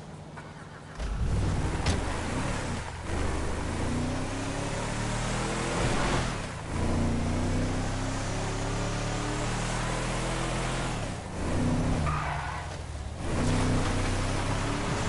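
A truck engine starts and revs loudly.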